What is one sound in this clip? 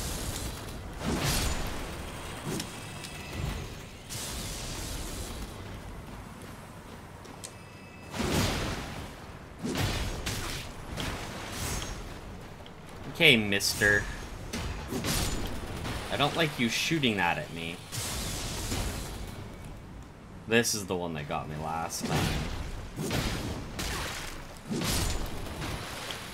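Swords clash and strike in sharp hits.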